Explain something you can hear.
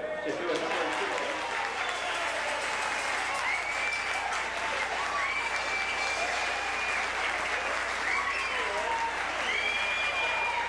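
A man sings into a microphone, heard through loudspeakers in an echoing room.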